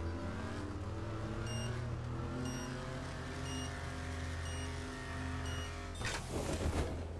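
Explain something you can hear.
A car engine revs hard and climbs in pitch as the car speeds up.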